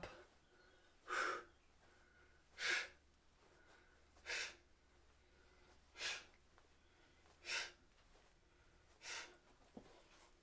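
A young man breathes out sharply in a steady rhythm.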